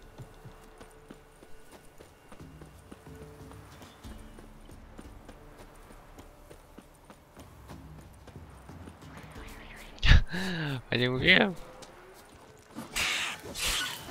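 Footsteps run over dry grass.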